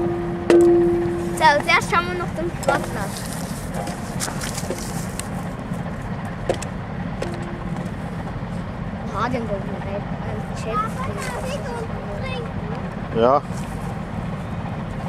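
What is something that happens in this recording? A boat engine rumbles steadily nearby.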